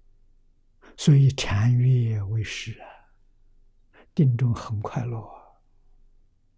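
An elderly man speaks calmly and slowly into a close microphone, in short phrases with long pauses.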